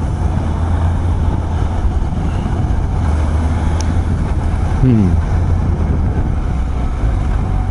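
A motorcycle engine hums steadily up close.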